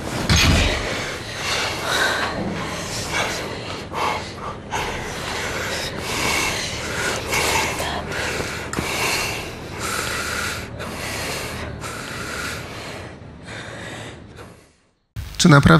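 A man speaks softly up close.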